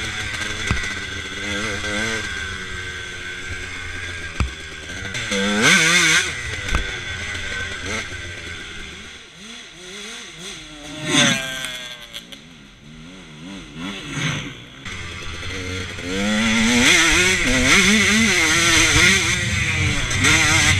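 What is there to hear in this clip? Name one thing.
A dirt bike engine revs loudly up and down, close by.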